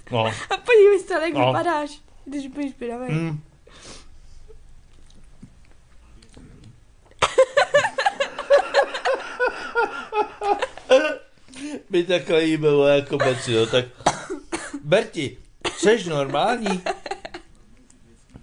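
A middle-aged man talks close by.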